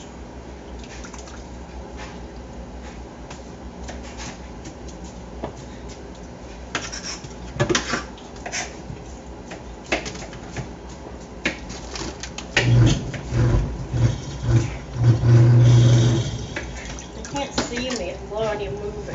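Water splashes in a sink.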